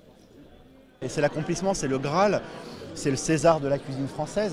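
A man speaks animatedly and close to microphones.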